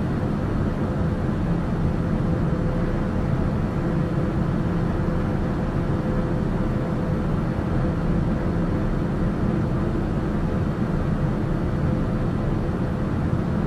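An aircraft engine drones steadily in cruise, heard from inside the cabin.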